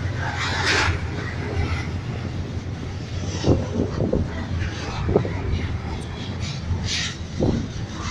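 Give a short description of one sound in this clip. A freight train rumbles past close by.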